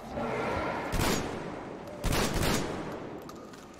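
A gun fires loud single shots.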